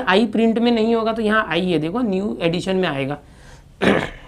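A man explains calmly, speaking close to a microphone.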